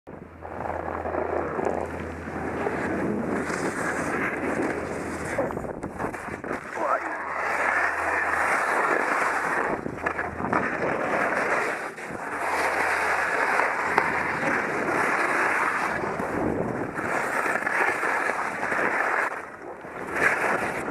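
Skis scrape and hiss over bumpy snow.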